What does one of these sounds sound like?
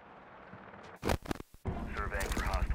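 Electronic static crackles in a short burst.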